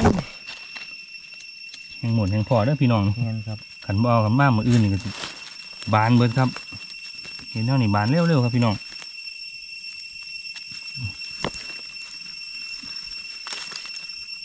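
A knife cuts through soft mushroom stems.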